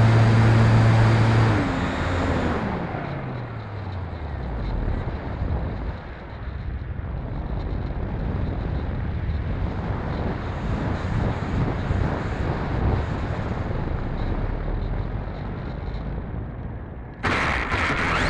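Wind rushes past the model plane.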